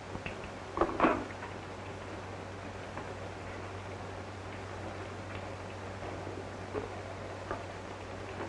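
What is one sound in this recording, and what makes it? Objects knock and clink on a wooden table.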